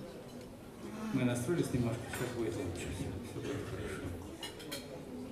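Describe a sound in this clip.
An elderly man sings into a microphone.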